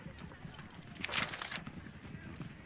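A sheet of paper flips over with a quick rustle.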